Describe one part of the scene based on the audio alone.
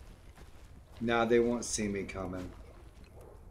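An older man speaks briefly into a microphone.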